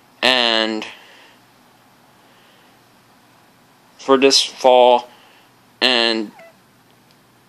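A talking plush toy plays short, high, cheerful voice phrases through a small tinny speaker.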